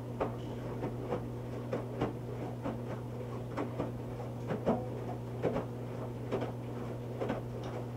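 A washing machine drum hums steadily as it turns.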